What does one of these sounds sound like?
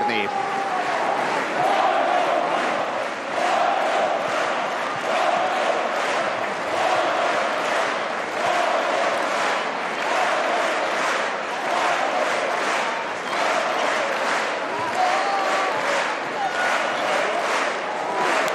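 A crowd chants in rhythm.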